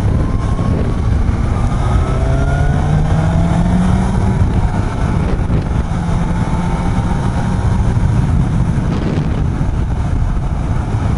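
A motorcycle engine hums steadily while riding, with its pitch rising as it speeds up.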